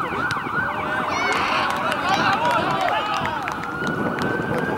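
Men shout and cheer outdoors.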